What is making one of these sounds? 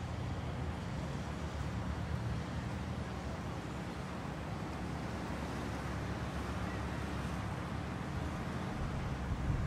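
A small crowd murmurs softly outdoors.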